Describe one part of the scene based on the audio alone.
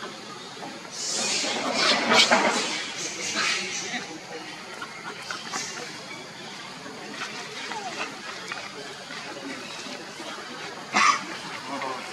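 A baby monkey squeals and cries in short bursts.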